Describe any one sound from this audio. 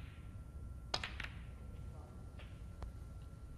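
Snooker balls knock together in a quick burst of clicks.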